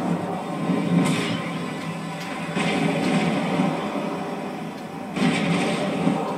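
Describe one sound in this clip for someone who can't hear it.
Whooshing boosts burst out through a speaker.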